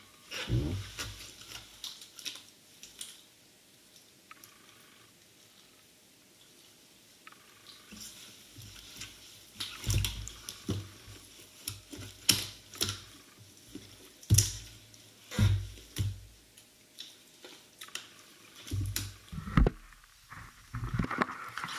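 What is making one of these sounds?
Plastic crinkles and rustles close by.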